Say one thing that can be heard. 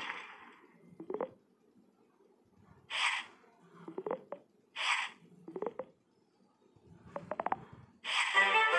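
Blocks drop into place with soft game thuds.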